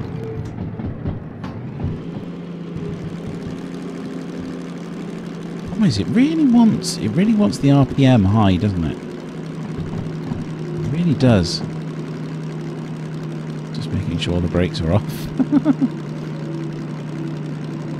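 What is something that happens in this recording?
A diesel shunting locomotive's engine drones, heard from inside the cab.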